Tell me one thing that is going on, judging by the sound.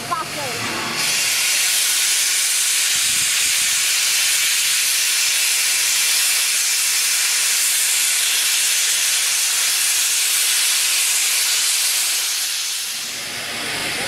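Steam hisses loudly and steadily from a locomotive, then cuts off.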